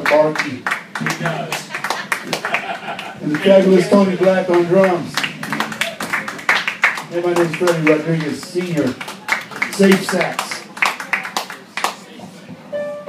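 An elderly man talks loudly close by.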